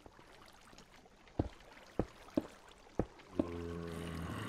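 Stone blocks crack and break with sharp knocks.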